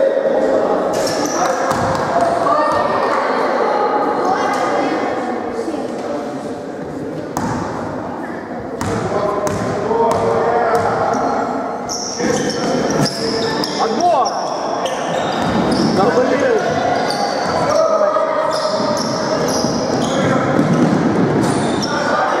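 A crowd of young spectators chatters and calls out throughout.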